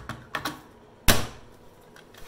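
A battery snaps into a power tool with a sharp click.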